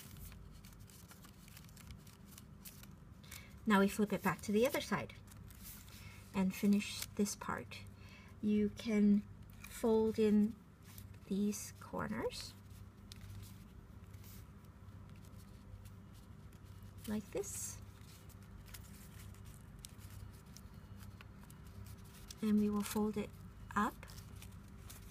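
Paper crinkles and rustles as it is folded.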